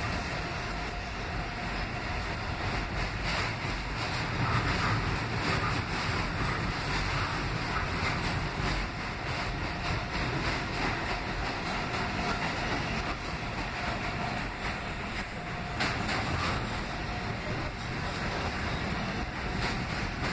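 A subway train rumbles and rattles loudly along the tracks.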